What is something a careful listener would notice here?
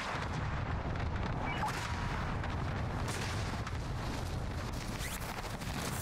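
Wind rushes steadily past during a fall through the air.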